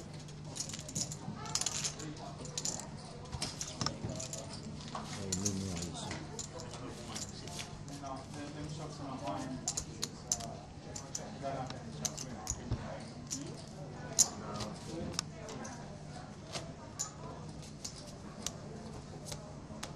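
Playing cards are shuffled and slid on a felt table.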